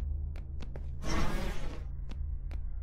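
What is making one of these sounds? A sudden magical whoosh bursts and fades.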